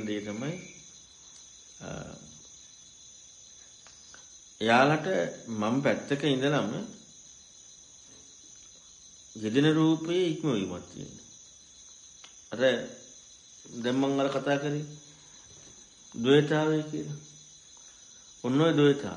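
A man speaks calmly in short phrases with pauses between them.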